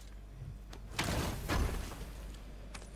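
A chest bursts open with a rushing whoosh.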